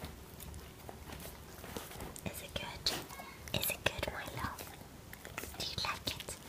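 A dog licks its lips with wet smacking sounds.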